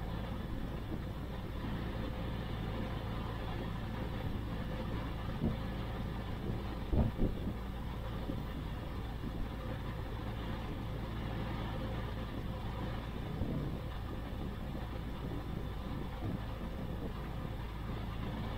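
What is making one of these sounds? An aircraft engine runs steadily close by.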